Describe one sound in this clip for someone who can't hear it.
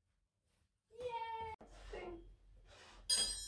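A triangle rings brightly.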